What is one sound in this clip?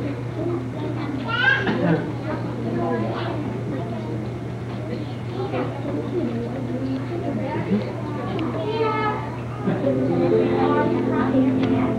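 Young children chatter and call out excitedly in a room.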